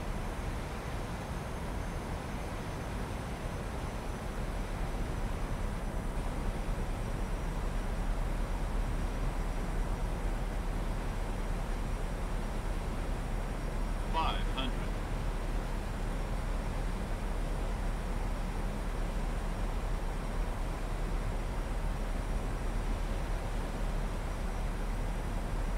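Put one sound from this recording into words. A jet's engines hum steadily with a rushing of air.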